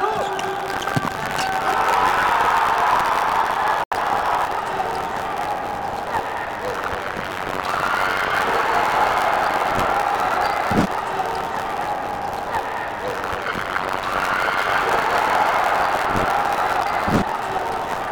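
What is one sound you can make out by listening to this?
A ball is kicked hard on an indoor court.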